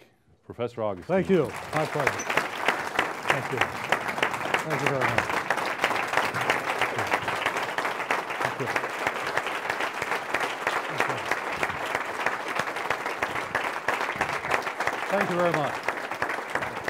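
A large crowd applauds loudly and steadily.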